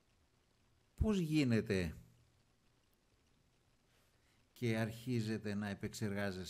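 A man speaks calmly into a microphone, in short bursts.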